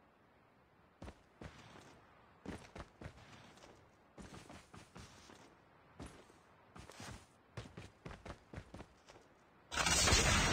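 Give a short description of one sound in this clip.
Footsteps thud on grass.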